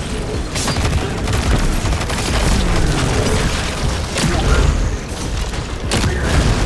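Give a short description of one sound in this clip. Energy weapons fire in rapid bursts with sharp electronic zaps.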